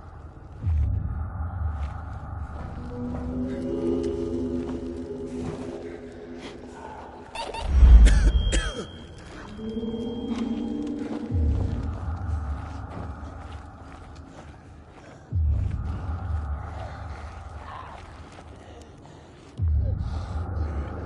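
Monstrous creatures growl low and close by.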